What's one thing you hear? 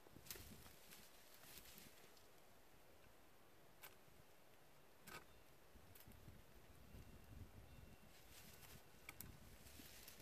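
Pruning shears snip through thin branches.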